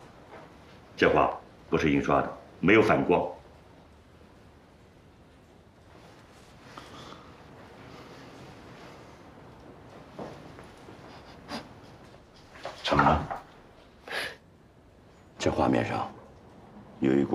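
An elderly man speaks quietly and thoughtfully nearby.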